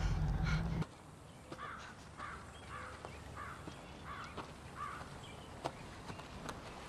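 Footsteps crunch softly on leaf litter outdoors.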